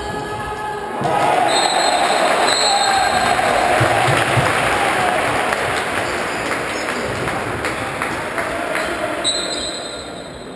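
A crowd cheers and roars in a large echoing hall.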